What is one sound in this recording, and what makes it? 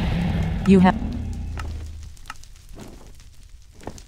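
Fire crackles softly nearby.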